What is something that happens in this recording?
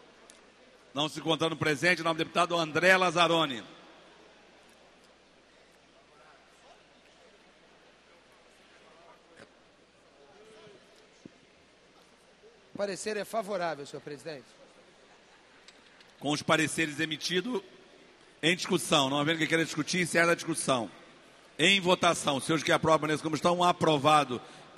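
A man speaks steadily into a microphone in a large hall, in short bursts with pauses.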